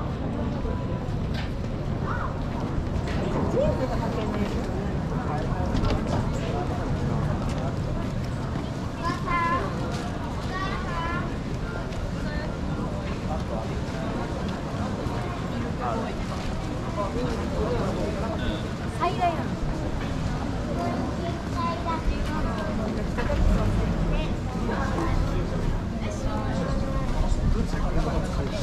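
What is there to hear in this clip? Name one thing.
A crowd of men and women murmurs and chats nearby.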